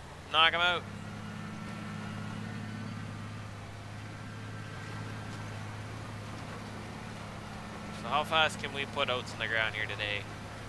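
A tractor engine hums with a low, steady drone.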